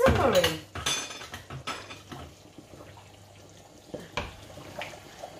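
A spoon stirs food in a pot.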